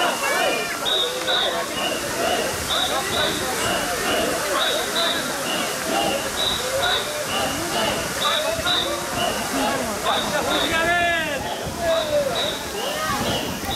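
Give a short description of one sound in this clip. Water hisses as it sprays from a fire hose.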